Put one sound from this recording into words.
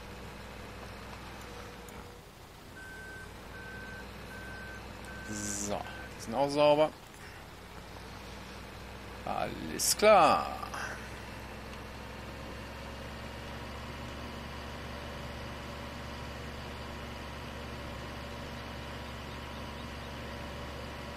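A small tractor engine hums steadily.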